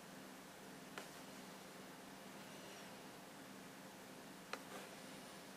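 A small brush clicks faintly against a paint pot.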